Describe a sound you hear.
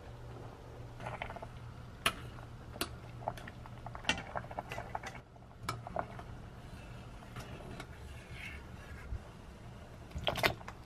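A metal strainer scrapes and clinks against the pot.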